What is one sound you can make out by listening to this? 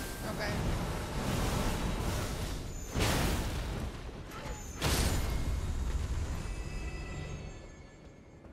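Magic spells burst with loud, roaring whooshes.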